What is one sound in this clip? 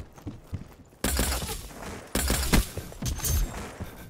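A crossbow fires bolts in a video game.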